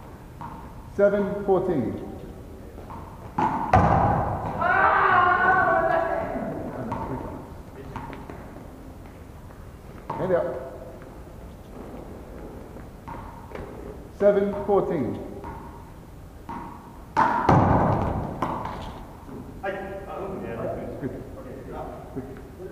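Men shout and call out to each other in a large echoing hall.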